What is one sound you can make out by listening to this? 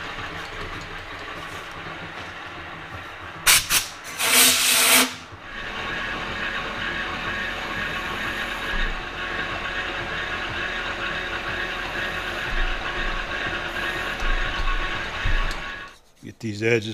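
A lathe spins with a steady whirring hum.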